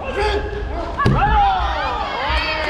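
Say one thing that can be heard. Young women karate fighters let out sharp shouts as they exchange strikes.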